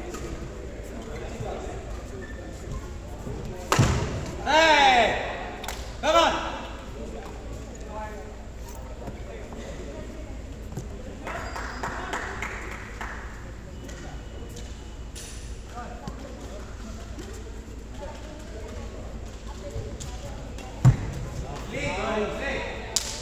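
Shoes squeak on an indoor court.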